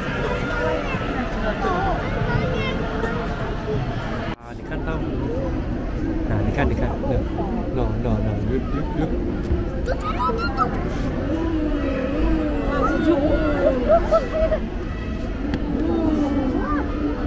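Young children chatter and call out excitedly nearby.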